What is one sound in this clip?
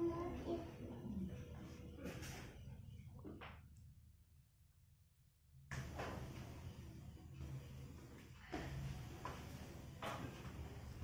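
Bodies shift and rustle on a floor mat.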